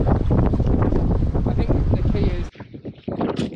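Strong wind buffets the microphone on open water.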